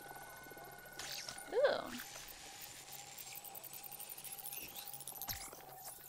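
An electronic scanner whirs and chirps rising in pitch.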